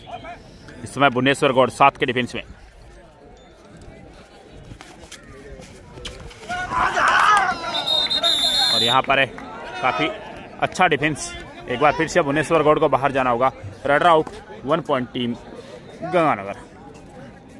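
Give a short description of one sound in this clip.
Young men shout and chant loudly outdoors.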